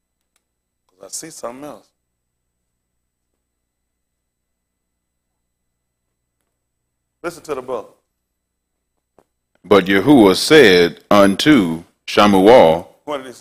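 A man speaks clearly into a microphone, lecturing with pauses.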